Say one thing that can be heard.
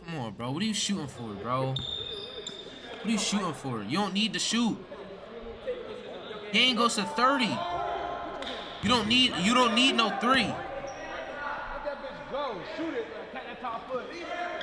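A young man talks and shouts excitedly into a microphone.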